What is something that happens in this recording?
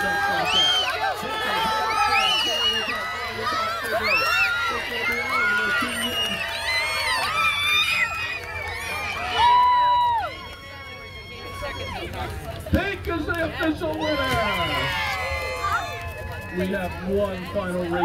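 A crowd of people cheers and shouts excitedly outdoors.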